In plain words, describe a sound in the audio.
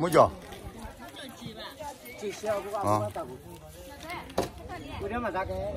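Several men and women talk at once outdoors.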